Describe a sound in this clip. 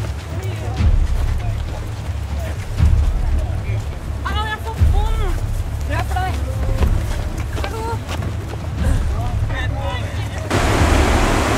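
Teenagers chatter and call out nearby outdoors.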